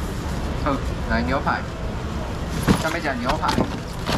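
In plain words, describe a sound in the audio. A foam box lid squeaks and thumps as it is lifted.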